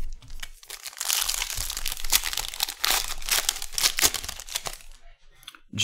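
Plastic card wrappers crinkle and tear as hands open a pack.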